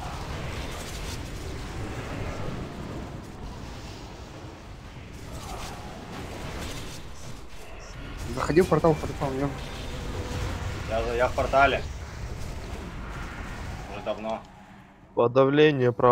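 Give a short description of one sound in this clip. Magic spells crackle and whoosh amid clashing battle sounds.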